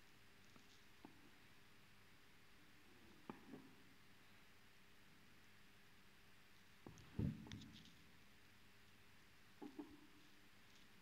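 Crocheted fabric rustles softly now and then.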